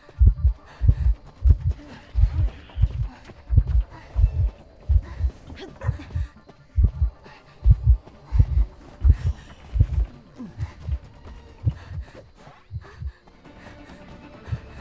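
Heavy footsteps thud in a quick, steady rhythm.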